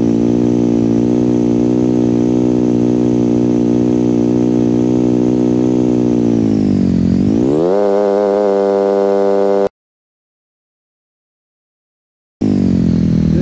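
A motorbike engine hums steadily, dipping and rising in pitch.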